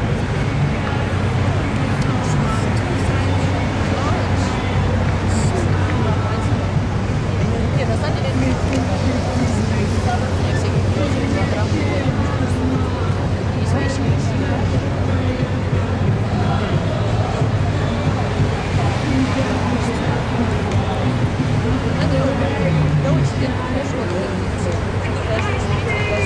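Boat engines rumble steadily nearby on the water.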